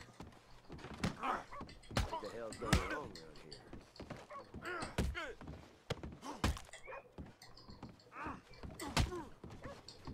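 Fists thud in heavy punches.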